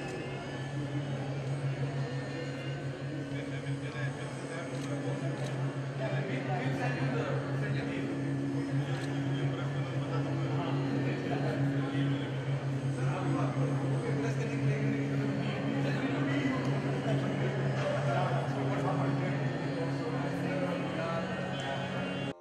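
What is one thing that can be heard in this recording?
A crowd of people chatter around in a hall.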